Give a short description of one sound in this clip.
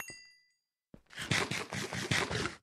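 Bread is munched and crunched in quick bites.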